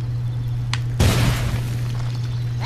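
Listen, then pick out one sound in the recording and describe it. An explosion bursts with a loud blast.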